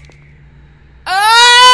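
A young man cries out loudly close to a microphone.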